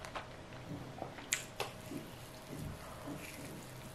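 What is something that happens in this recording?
A young woman bites into flatbread with a crisp tearing sound.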